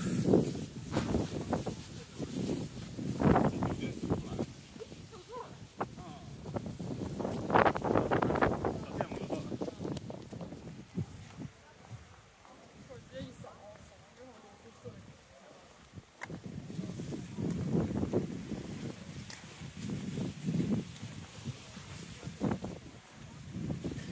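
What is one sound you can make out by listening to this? Wind gusts outdoors and rumbles against the microphone.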